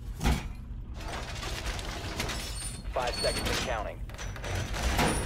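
A heavy metal panel scrapes and clanks into place.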